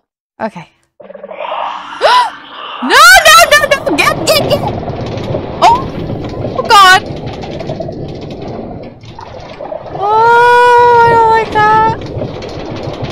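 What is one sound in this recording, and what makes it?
A minecart rumbles as it rolls along metal rails.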